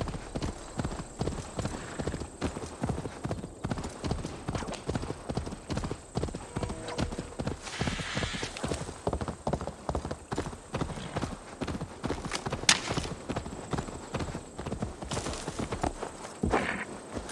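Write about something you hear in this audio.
Horse hooves thud rapidly on soft ground at a gallop.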